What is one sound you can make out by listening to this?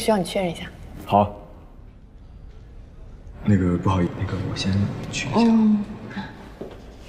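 A young man speaks calmly and softly.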